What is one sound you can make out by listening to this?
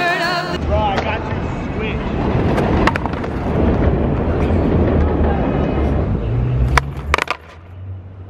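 Skateboard wheels rumble across rough pavement.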